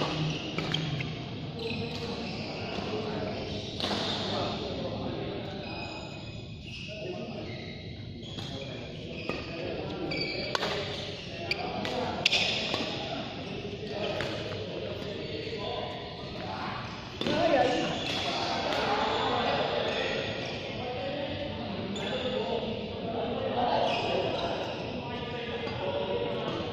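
Shoes squeak and thud on the court floor.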